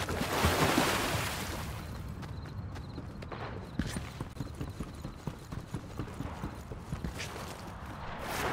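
Quick footsteps thud on wooden planks.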